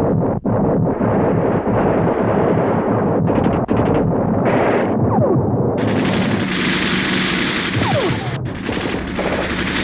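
Shells explode with loud rumbling bursts.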